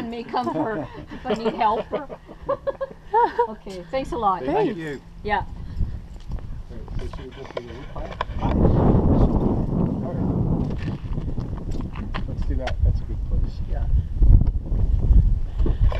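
Men talk casually outdoors, close by.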